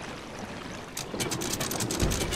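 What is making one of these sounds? An anchor capstan clicks and rattles as it turns.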